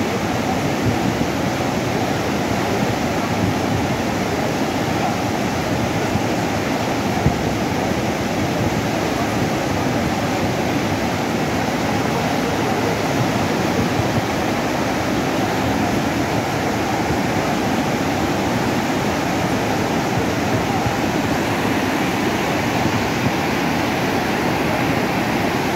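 A muddy flood river roars loudly and steadily close by.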